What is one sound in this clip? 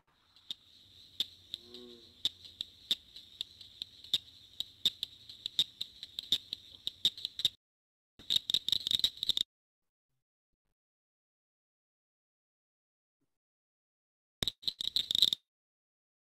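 A recording of frogs making rapid clicking calls plays over an online call.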